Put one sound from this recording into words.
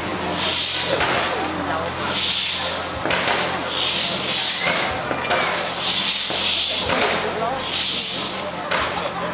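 Fireworks pop with short, sharp bangs.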